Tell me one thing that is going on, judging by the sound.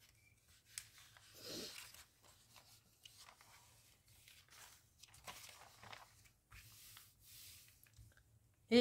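Magazine pages rustle and flip as they are turned.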